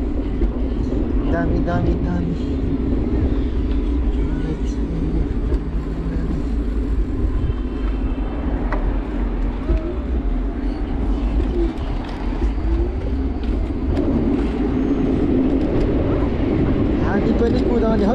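Wind rushes steadily past outdoors while riding.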